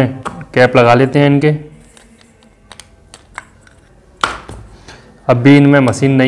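Plastic parts click as a man handles a light bulb.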